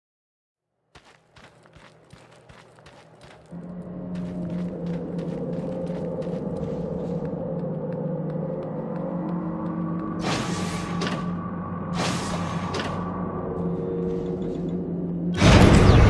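A low, steady ambient hum swells up and drones on.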